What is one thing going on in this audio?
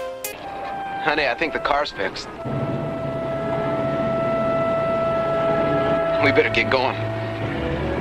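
A young man speaks casually.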